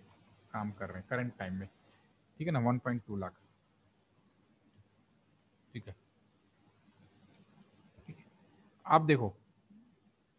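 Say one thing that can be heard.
A young man speaks calmly through a microphone in short bursts, with pauses.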